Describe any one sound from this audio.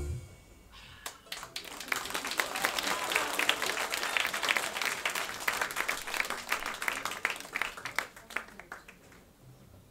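An audience claps and cheers loudly, then dies down.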